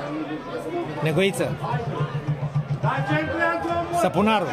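A crowd of spectators chants in a steady rhythm.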